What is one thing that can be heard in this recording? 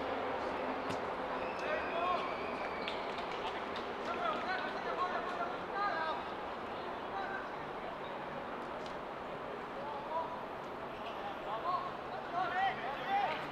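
Men shout to each other outdoors at a distance.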